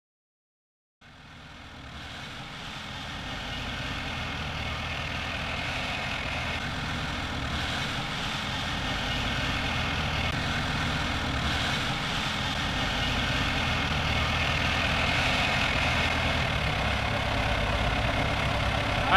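An armoured vehicle's tracks clatter and squeal as it drives.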